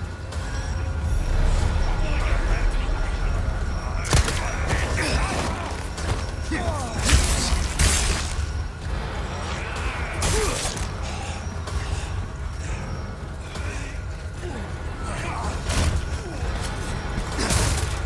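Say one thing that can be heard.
Footsteps thud quickly over dirt and wooden boards.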